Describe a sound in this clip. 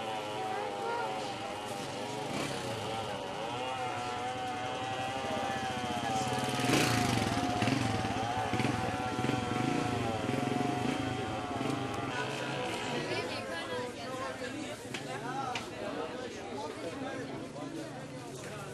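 Many men and women chatter all around in a busy crowd.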